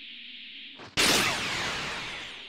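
A loud whooshing blast bursts out and fades.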